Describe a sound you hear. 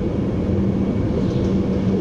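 A passing train rushes by close alongside.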